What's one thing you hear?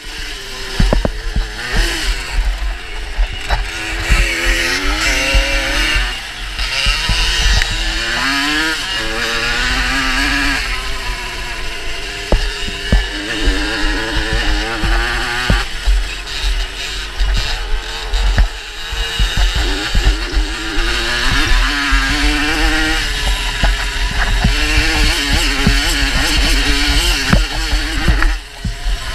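Wind rumbles and buffets against a rider's helmet.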